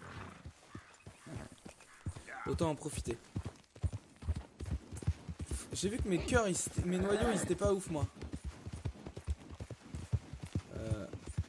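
A horse's hooves thud steadily on a dirt trail.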